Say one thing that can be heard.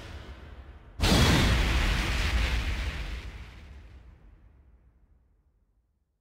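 A bright burst booms and fades.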